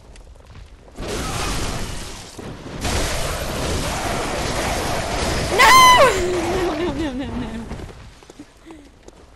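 Game weapons clash and slash loudly in a fight.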